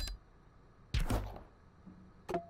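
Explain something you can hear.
A heavy body lands with a loud thud.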